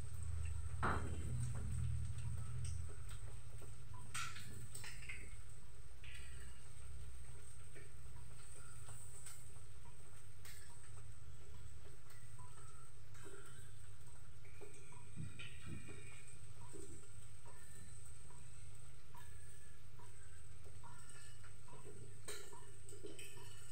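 Utensils clink and scrape against pans.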